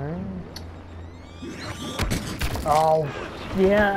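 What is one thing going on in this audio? Blaster shots crack and zap in quick bursts.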